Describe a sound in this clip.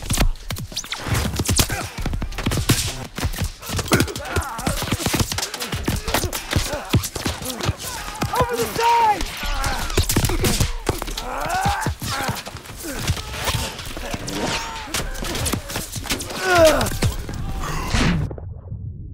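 Gunfire and explosions crack and boom all around.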